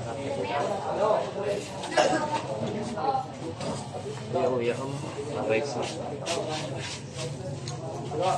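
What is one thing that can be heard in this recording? A crowd of young men and women chatters nearby.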